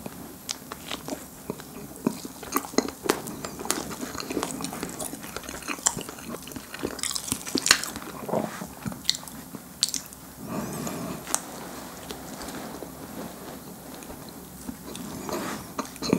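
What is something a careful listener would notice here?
A man chews crunchy food close to a microphone, with crisp crackling bites.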